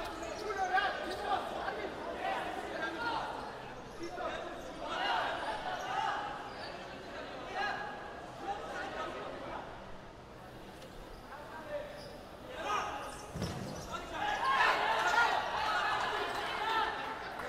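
Players shout to each other in a large echoing indoor hall.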